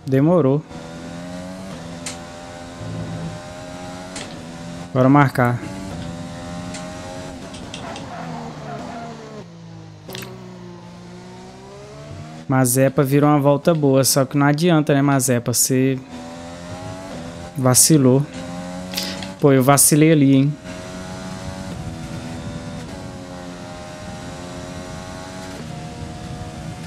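A racing car engine whines, rising and dropping in pitch as it shifts gears.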